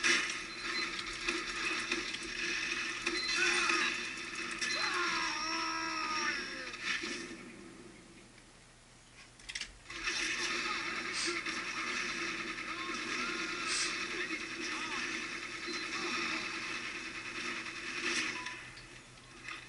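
Gunfire and explosions from a video game play through a speaker.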